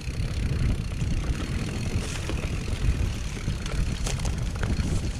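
Bike tyres crunch and rattle over a rough dirt trail.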